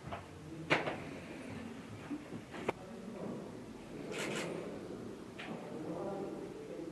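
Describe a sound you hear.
A middle-aged man murmurs a recitation softly.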